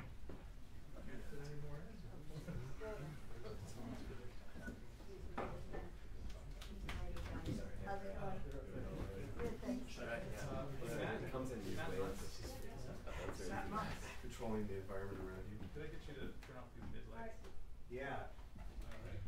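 Men in a small audience chat quietly nearby.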